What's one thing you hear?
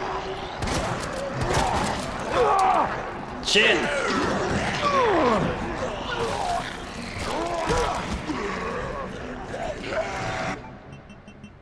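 A young man talks and laughs with animation close to a microphone.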